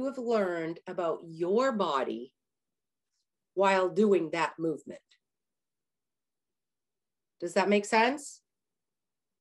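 A middle-aged woman speaks with animation over an online call, in short bursts with pauses.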